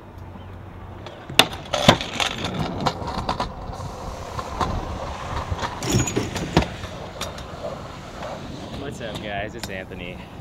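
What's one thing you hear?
Scooter wheels roll and rattle over concrete.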